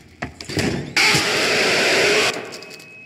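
A monster lets out a sudden, loud, harsh shriek.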